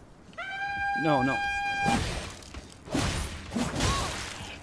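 A young man speaks with animation into a nearby microphone.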